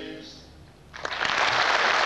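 Four men sing together in harmony.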